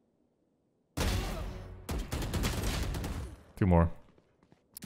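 Rapid rifle shots ring out.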